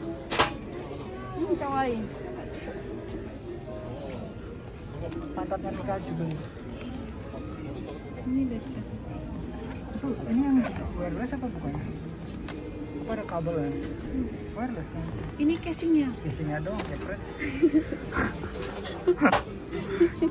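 A young woman talks quietly and close by.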